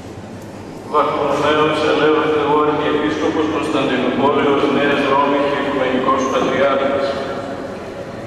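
An elderly man chants loudly into a microphone in a large echoing hall.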